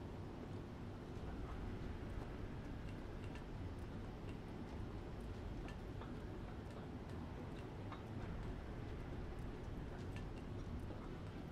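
Heavy machinery hums low and steady.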